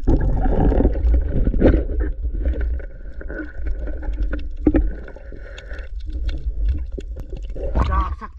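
Water rumbles and gurgles, muffled underwater.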